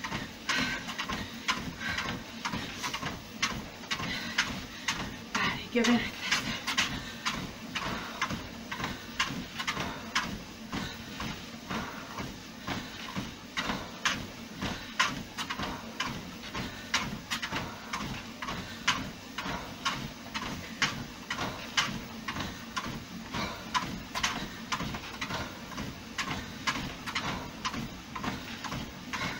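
Footsteps thud steadily on a running treadmill.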